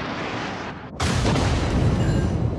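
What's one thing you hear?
A shell explodes with a sudden loud blast.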